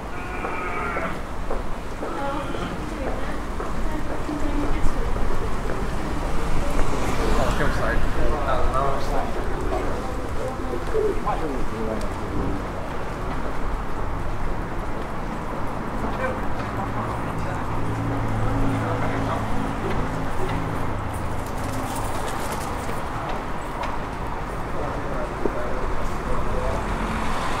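Footsteps tap on paving stones.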